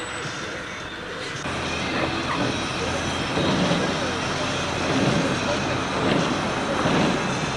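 Rain spatters on a windshield.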